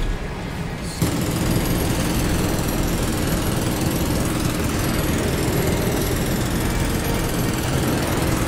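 A heavy machine gun fires a long, steady stream of rapid shots.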